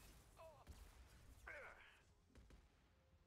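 Flames roar in a sudden burst.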